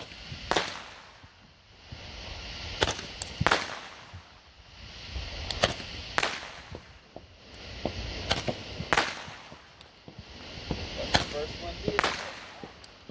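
Fireworks pop and crackle loudly outdoors.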